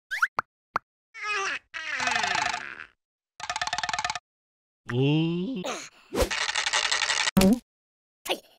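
A cartoon creature jabbers in a loud, squeaky voice.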